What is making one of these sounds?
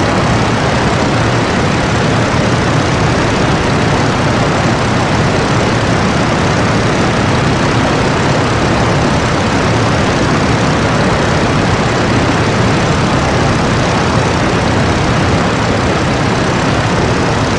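An aircraft engine drones steadily and loudly.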